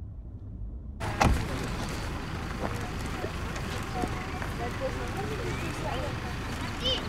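Men and women chat at a distance outdoors.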